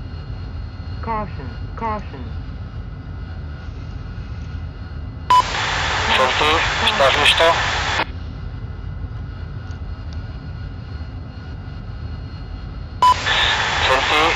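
A jet engine idles with a steady low rumble.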